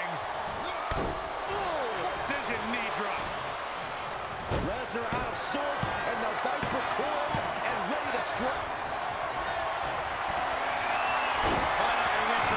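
A heavy body thuds onto a wrestling ring mat.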